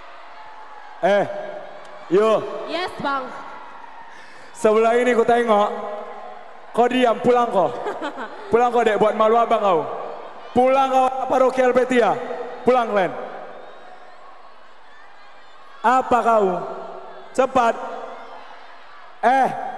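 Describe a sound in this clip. A man speaks with animation through a loudspeaker in a large echoing hall.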